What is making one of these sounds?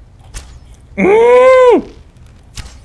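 A creature lets out a loud, groaning cry.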